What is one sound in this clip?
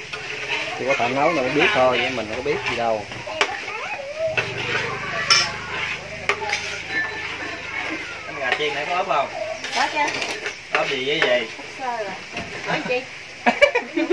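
A metal spoon scrapes and clinks against a metal wok.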